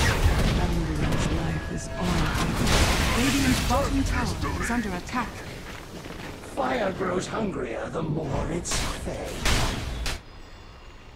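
Magic spells crackle and burst amid clashing blows.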